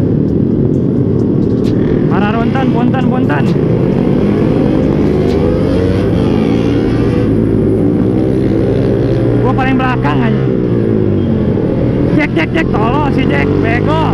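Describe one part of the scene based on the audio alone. A motorcycle engine drones steadily and revs up and down.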